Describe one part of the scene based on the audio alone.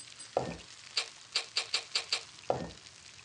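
A salt shaker rattles in quick shakes.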